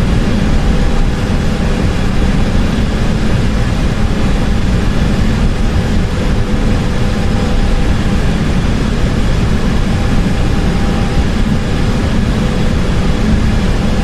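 Jet engines roar steadily in a cockpit.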